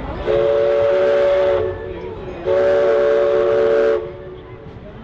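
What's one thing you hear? A steamboat whistle blows two long, loud blasts.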